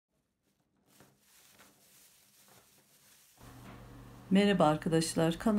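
A plastic bag rustles and crinkles up close.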